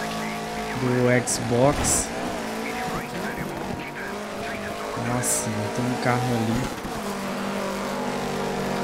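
Gravel crunches and hisses under tyres.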